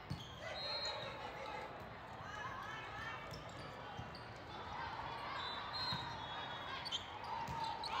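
Many voices of girls and spectators chatter and call out across the hall.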